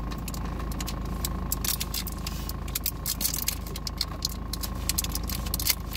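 Paper crinkles in a man's hands.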